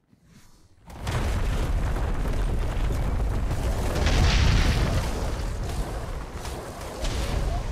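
Heavy blows pound a giant beast.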